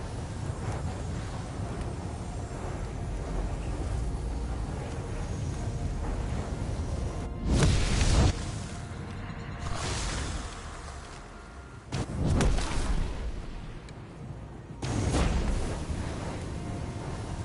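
Magic fire blasts burst and crackle loudly.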